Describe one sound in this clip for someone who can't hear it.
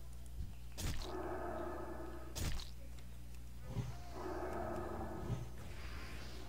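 A magic spell charges up with a humming, shimmering tone.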